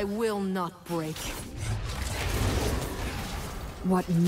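Magic blasts whoosh and crackle in a fantasy battle.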